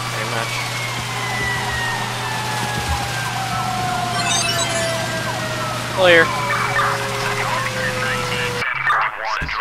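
A fire engine siren wails and slowly winds down.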